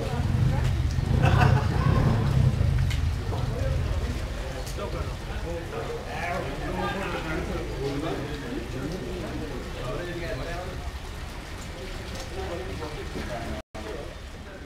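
Motorcycle engines idle and rumble.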